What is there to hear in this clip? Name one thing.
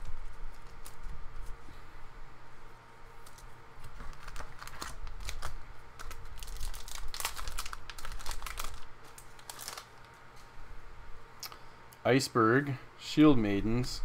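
Playing cards rustle and slide against each other in hands.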